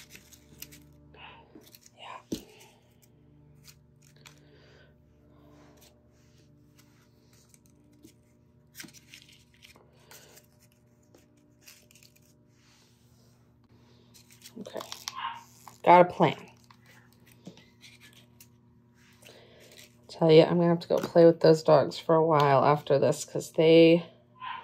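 Stiff paper rustles and crinkles as hands handle it.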